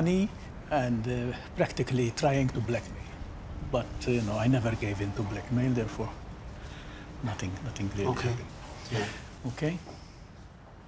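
An elderly man speaks calmly and earnestly, close by.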